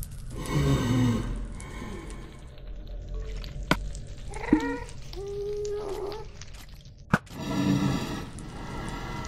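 A floating creature wails with a high, eerie cry.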